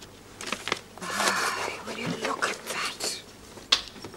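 Paper rustles as a booklet is handled.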